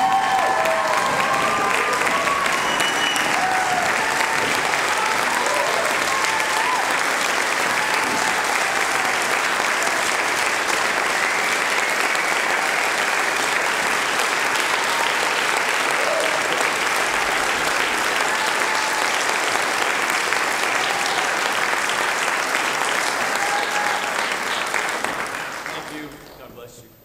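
An audience applauds loudly in a large hall, then the clapping stops abruptly.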